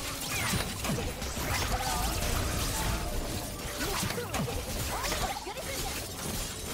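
Fantasy game spell effects whoosh, zap and crackle rapidly during a battle.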